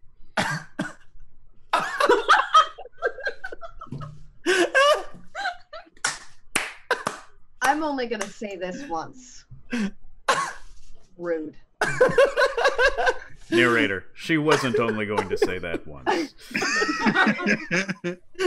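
Several young adults laugh loudly over an online call.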